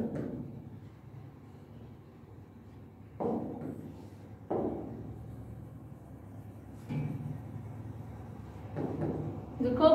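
A marker squeaks and taps on a board.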